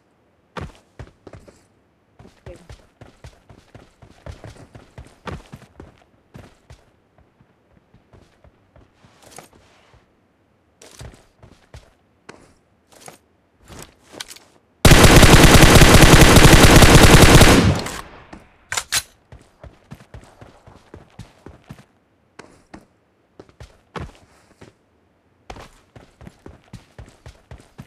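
Footsteps crunch over dirt and gravel.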